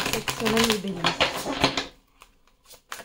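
Playing cards are riffled and shuffled with a quick, fluttering rush.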